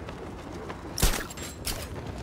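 A heavy thud sounds as a figure lands on a ledge.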